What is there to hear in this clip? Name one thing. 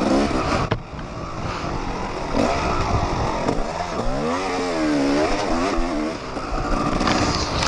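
A dirt bike engine revs and roars up and down, close by.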